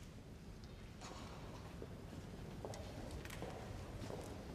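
Footsteps shuffle softly in a large echoing hall.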